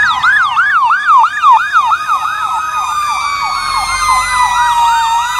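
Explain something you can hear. An air horn blares steadily.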